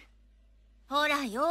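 A woman calls out calmly.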